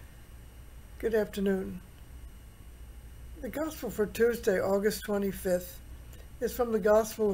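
An elderly woman speaks calmly and slowly, close to a microphone, as if on an online call.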